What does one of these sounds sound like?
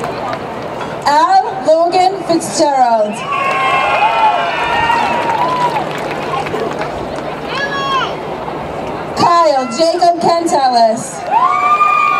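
A woman reads out through a loudspeaker in a large open space.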